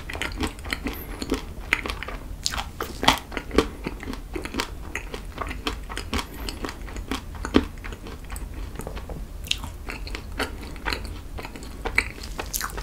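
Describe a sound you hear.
A young man chews food wetly and loudly, close to a microphone.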